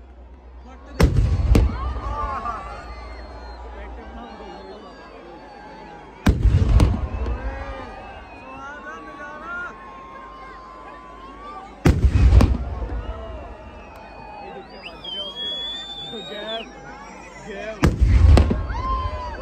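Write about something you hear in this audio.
Large firework blasts boom loudly every few seconds.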